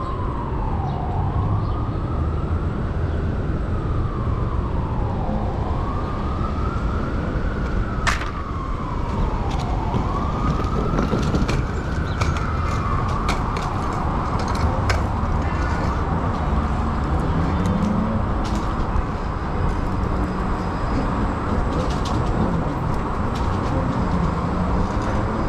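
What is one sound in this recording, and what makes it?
Wind rushes steadily past a moving bicycle outdoors.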